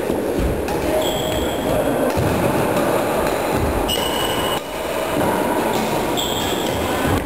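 Sports shoes squeak on a wooden floor.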